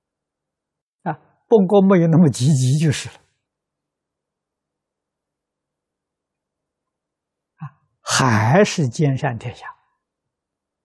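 An elderly man speaks calmly and warmly into a close microphone, with long pauses.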